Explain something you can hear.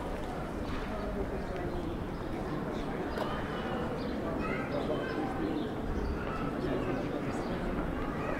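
Men and women chat quietly in the distance outdoors.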